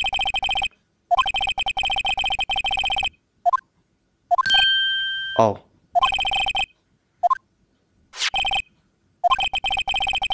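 Short electronic blips tick rapidly in bursts.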